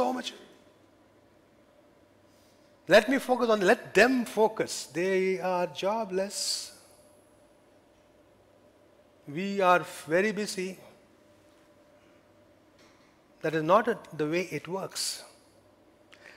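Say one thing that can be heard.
A middle-aged man speaks with animation into a headset microphone, pausing between phrases.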